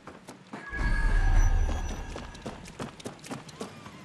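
Footsteps clank quickly on a metal walkway.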